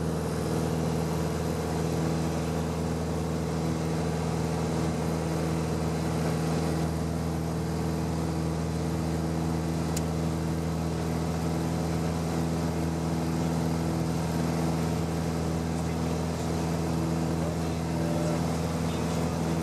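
Wind rushes steadily past the cabin.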